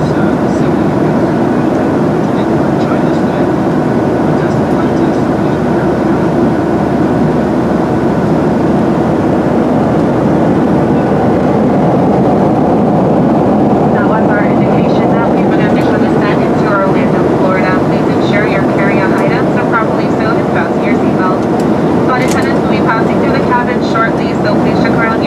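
Jet engines roar steadily inside an aircraft cabin.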